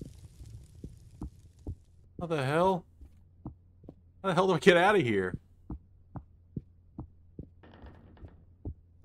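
Footsteps thud slowly and evenly on a hard floor.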